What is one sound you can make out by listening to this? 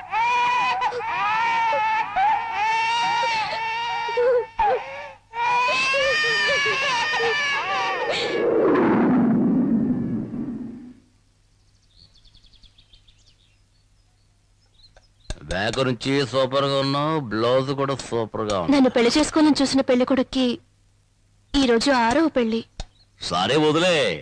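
A woman sings a slow song in a high, wavering voice.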